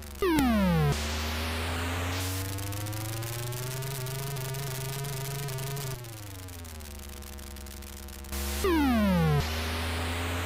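A sharp electronic squeal sweeps downward as a car drifts.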